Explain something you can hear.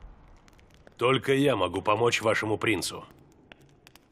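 A man speaks in a deep, gravelly voice.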